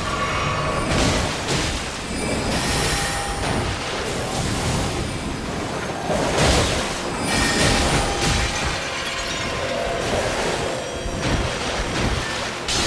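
Magical blasts whoosh and crackle loudly.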